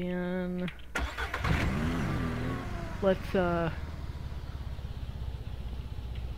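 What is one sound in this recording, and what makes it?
A small utility vehicle's engine starts and hums steadily as it drives.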